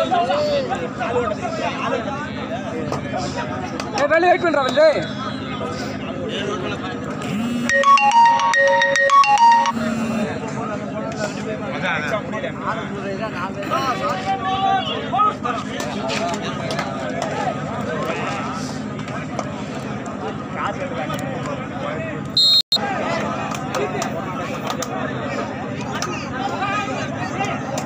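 A large outdoor crowd of young men chatters and shouts.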